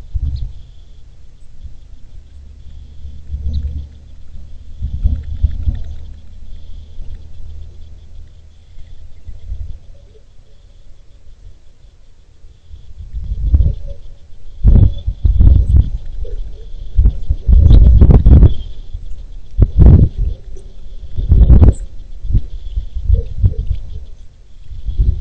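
Wind blows in rough gusts outdoors.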